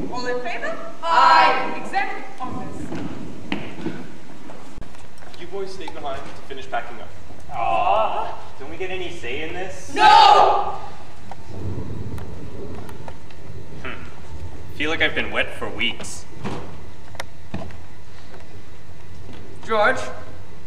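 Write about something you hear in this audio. Young actors speak and call out loudly in a large echoing hall.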